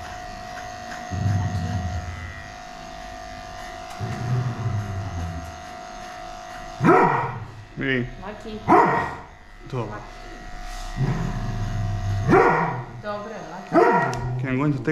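An electric hair clipper buzzes steadily.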